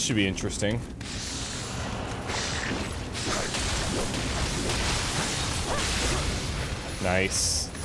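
Blades clash and ring in a fight.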